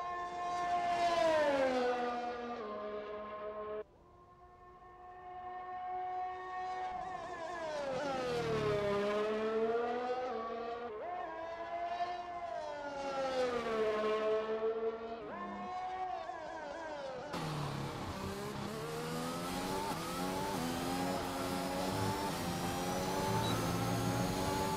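A racing car engine whines loudly, rising and falling in pitch as the car speeds past and shifts gears.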